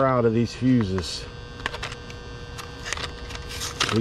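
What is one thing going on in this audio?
Plastic packaging crinkles as it is torn open.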